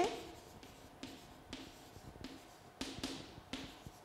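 Chalk taps and scrapes on a board in short strokes.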